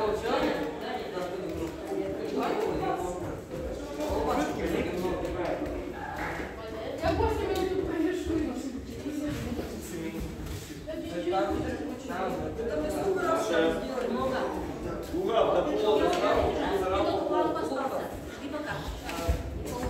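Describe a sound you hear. Children and teenagers talk and chatter nearby in an echoing room.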